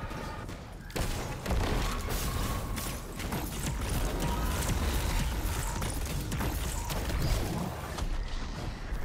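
Gunfire bursts rapidly in a video game.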